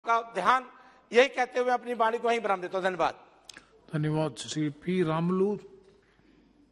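A man speaks with animation into a microphone.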